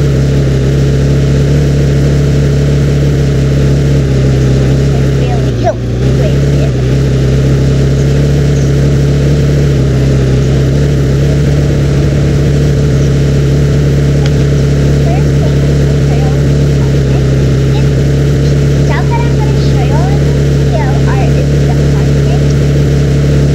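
A small quad bike engine hums steadily as it drives.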